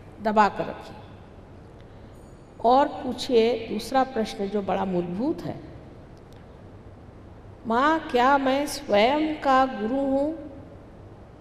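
A middle-aged woman speaks calmly into a microphone, pausing between phrases.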